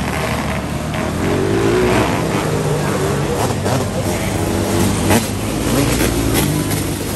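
Racing car engines roar loudly around a dirt track.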